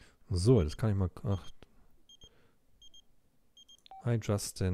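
A phone rings with short, repeated electronic beeps.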